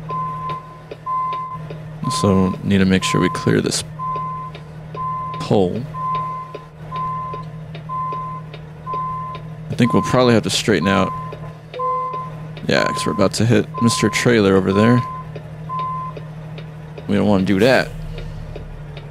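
A truck engine idles with a low steady hum.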